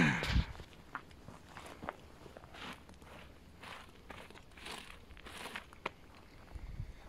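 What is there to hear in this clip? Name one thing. Dry grass rustles as a man crouches and moves through it.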